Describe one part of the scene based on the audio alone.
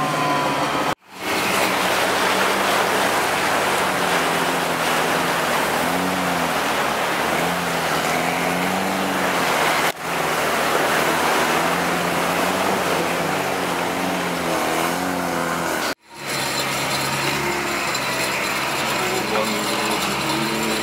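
An engine revs up and down.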